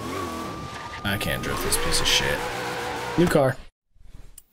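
Tyres screech while drifting.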